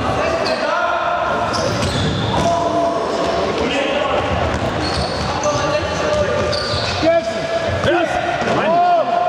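A ball is kicked with a dull thud in an echoing hall.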